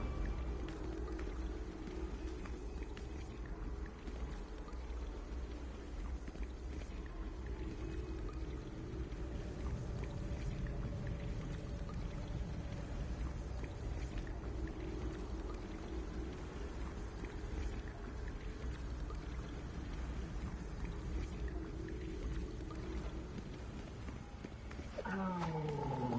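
Game music hums steadily with a low drone.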